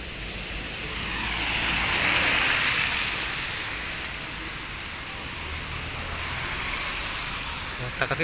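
Gusts of wind rustle palm leaves and tree branches.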